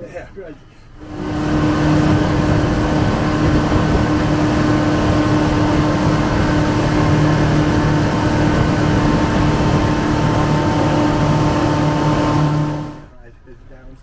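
A boat's outboard motor roars steadily at speed.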